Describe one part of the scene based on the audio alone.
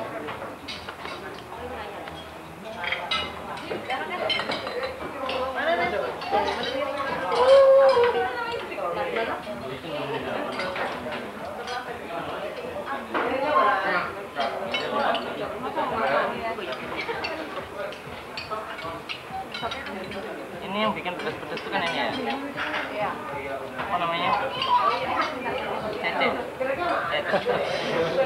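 Young men and women chat together nearby.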